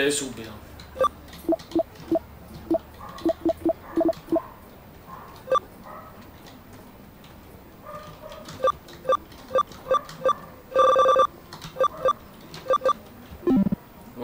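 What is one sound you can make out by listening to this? Short electronic beeps tick as a menu cursor moves.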